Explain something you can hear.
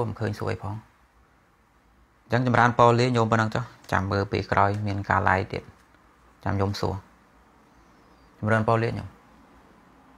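A man speaks calmly and close to a microphone, in bursts with pauses.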